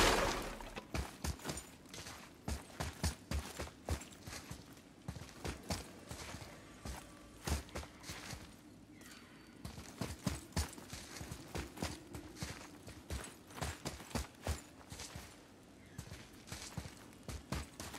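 Heavy footsteps crunch on stone and gravel.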